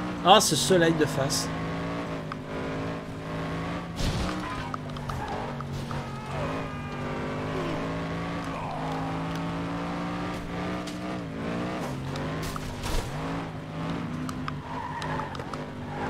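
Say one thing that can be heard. A racing car engine drones steadily, rising and dropping in pitch.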